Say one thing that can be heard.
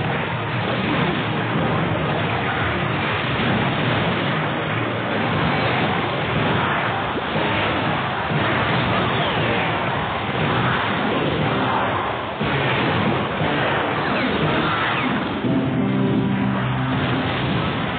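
Cartoon battle effects clash and thud.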